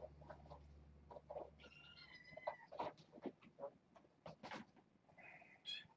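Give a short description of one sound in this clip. Cats scamper and thump across a floor.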